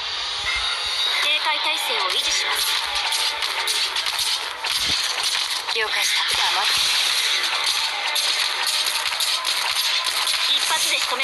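Rapid hits, slashes and blasts of a fight ring out over and over.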